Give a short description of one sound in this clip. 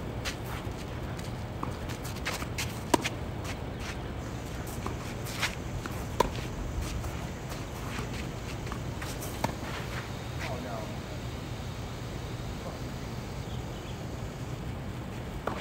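Tennis balls are struck with rackets in a steady rally.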